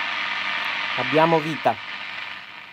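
A radio briefly gives a warbling tone between stations.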